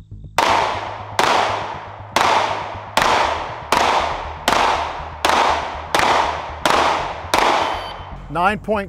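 A pistol fires a rapid series of loud shots outdoors, each echoing briefly.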